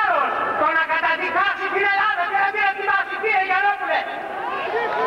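An elderly man speaks forcefully into a microphone, heard over loudspeakers.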